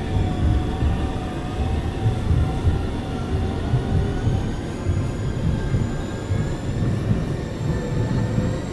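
An electric train motor whines with a steady, shifting hum.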